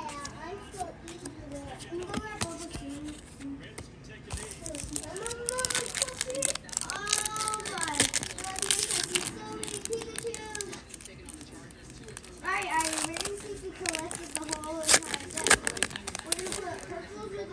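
Trading cards rustle as they are shuffled by hand.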